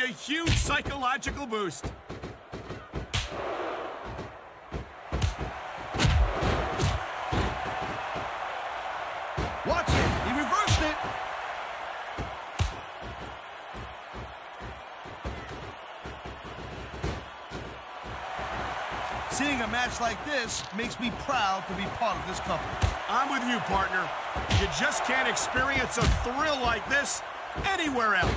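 Punches and body slams thud heavily in a wrestling ring.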